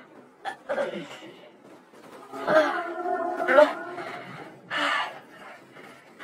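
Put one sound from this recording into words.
A young man groans and sobs in pain close by.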